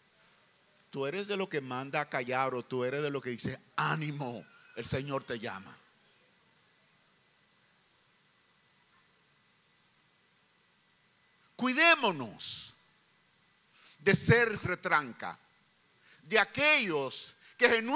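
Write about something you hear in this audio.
An older man speaks with passion into a microphone, heard through loudspeakers, pausing between phrases.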